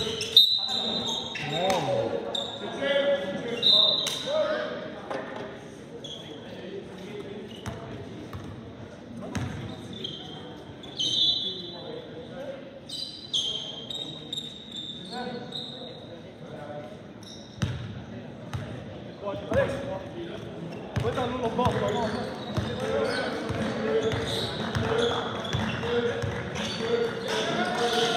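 Young men shout and call out to each other across an echoing hall.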